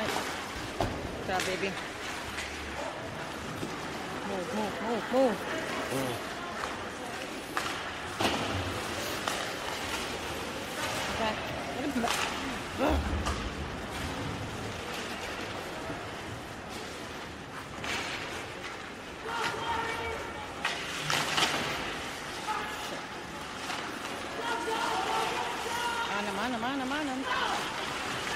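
Hockey sticks clack against the puck with sharp knocks.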